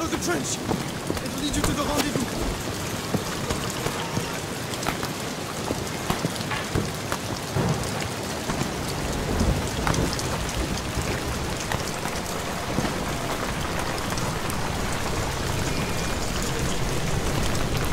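Footsteps tread on wet ground.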